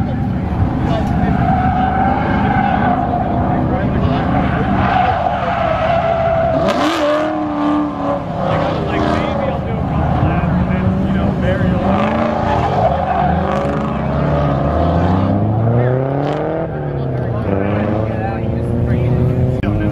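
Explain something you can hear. A car engine revs hard and roars close by.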